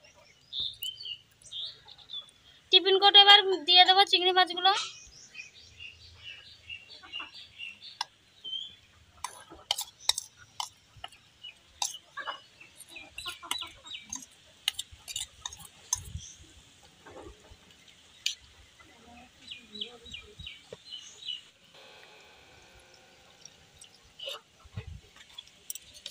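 A metal spoon scrapes and clinks against a steel bowl.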